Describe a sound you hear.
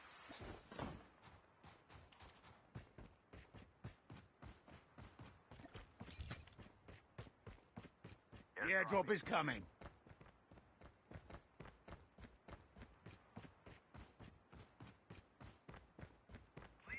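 Footsteps thud quickly and steadily over grass and rock.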